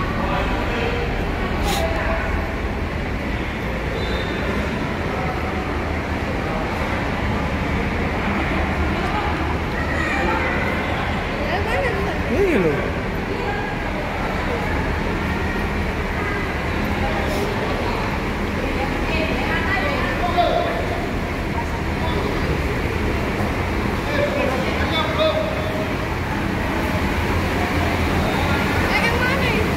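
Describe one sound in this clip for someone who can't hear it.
People chatter indistinctly in the distance.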